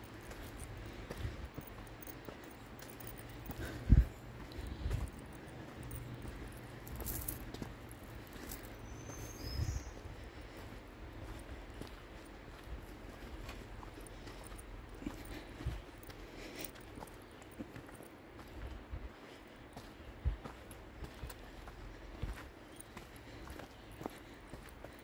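Footsteps thud on a rocky dirt trail.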